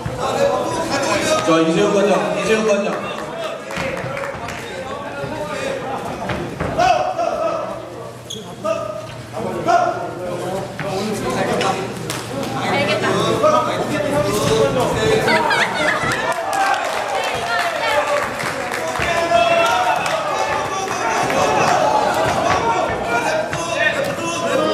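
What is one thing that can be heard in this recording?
A crowd of spectators shouts and cheers in an echoing indoor hall.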